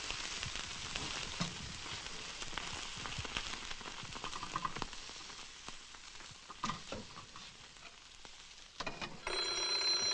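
Food sizzles loudly in a frying pan.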